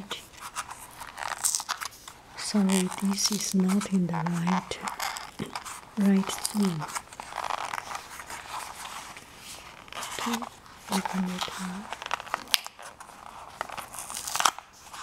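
Fingers handle a plastic case, tapping and clicking against it.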